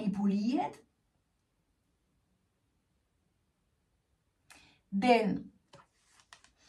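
A woman speaks expressively and close by, with pauses.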